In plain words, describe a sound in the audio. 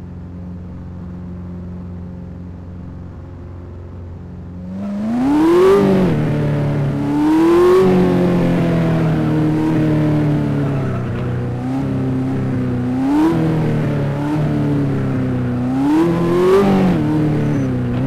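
A sports car engine idles, then revs up and down as the car drives.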